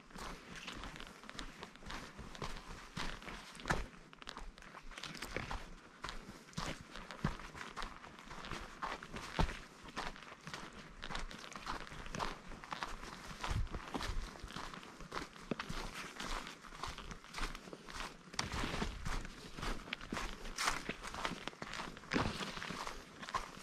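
Leaves and branches brush and rustle against a passing hiker.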